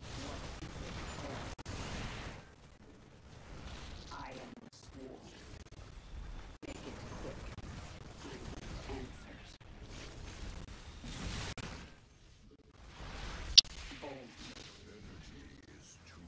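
Video game combat effects clash and crackle.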